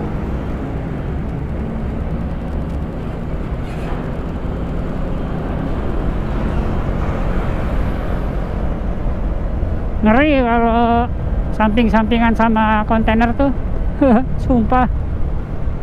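Wind roars steadily across a moving motorcycle.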